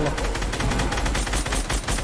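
A rifle fires rapid shots close by.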